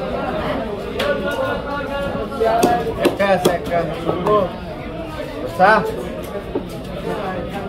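A heavy blade chops through fish on a hard surface.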